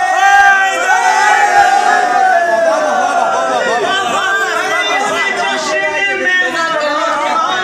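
A crowd of young men chants and shouts loudly together in an echoing hall.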